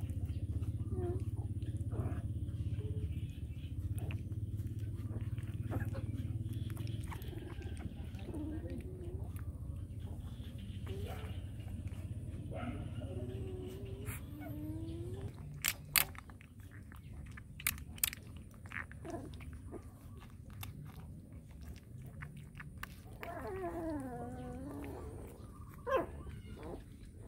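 A puppy whimpers and squeals in short high cries.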